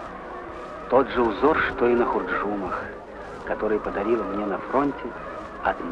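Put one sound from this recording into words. A middle-aged man speaks calmly and quietly.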